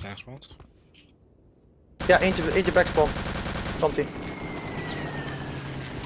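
A submachine gun fires short bursts.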